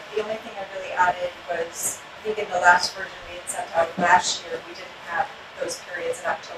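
A woman speaks with animation in a room with a slight echo.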